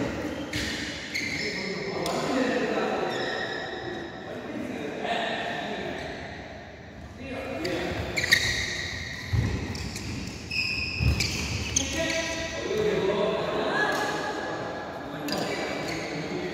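Men call out and chatter in a large echoing hall.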